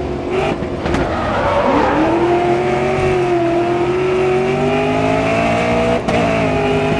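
A racing car engine roars loudly, its pitch rising as it speeds up and dropping at each gear change.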